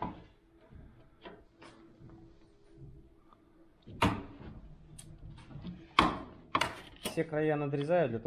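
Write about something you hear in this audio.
A manual sheet-metal brake clanks as it folds a steel sheet.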